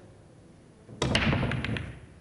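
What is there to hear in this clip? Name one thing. Pool balls crack loudly together as a rack is broken.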